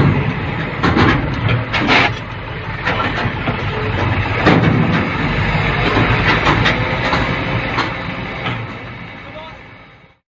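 A hydraulic arm whines as it lifts a container.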